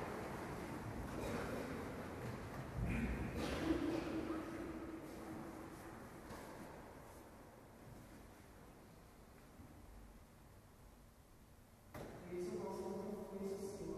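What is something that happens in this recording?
A choir of men chants slowly in a large echoing hall.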